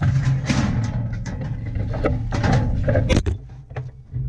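A cow's hooves clatter and stamp on a metal trailer floor.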